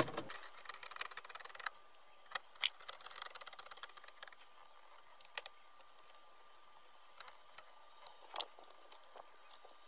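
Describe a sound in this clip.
Plastic trim clicks and snaps as hands pry at it.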